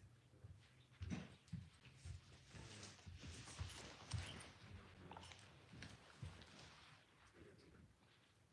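Someone settles onto a soft cushioned seat with a rustle of fabric.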